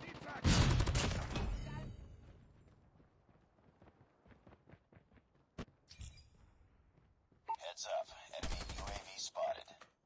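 A rifle fires rapid bursts of loud shots close by.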